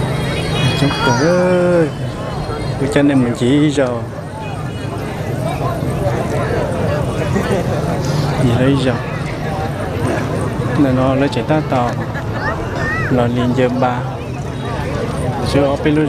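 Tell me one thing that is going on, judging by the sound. Men and women call out loudly nearby in the crowd.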